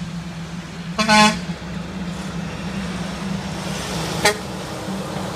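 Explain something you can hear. A truck horn blasts loudly, twice.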